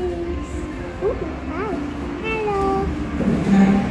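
A young girl talks excitedly nearby.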